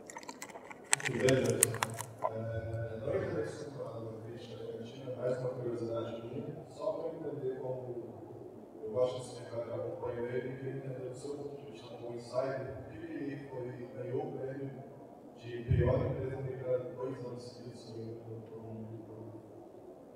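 A man speaks calmly into a microphone, heard over loudspeakers.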